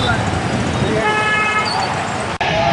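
A vehicle horn honks.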